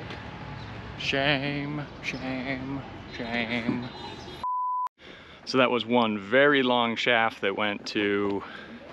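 A man talks with animation close to the microphone.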